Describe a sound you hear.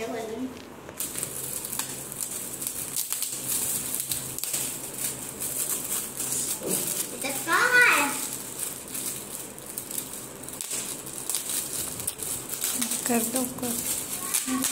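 Foil wrapping crinkles and rustles as it is handled.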